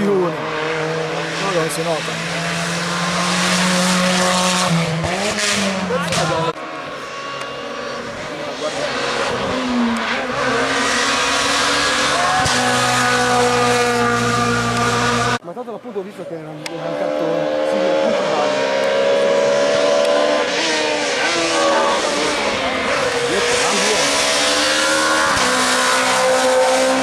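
Rally car engines roar and rev hard as cars speed past close by.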